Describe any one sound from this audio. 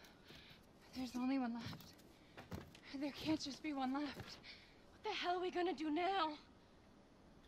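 A young woman speaks anxiously, close by.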